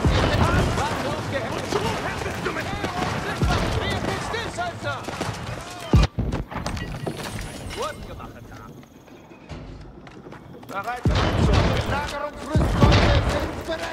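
Cannons boom and explosions crash in a battle.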